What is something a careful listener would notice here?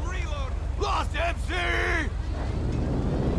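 A man shouts.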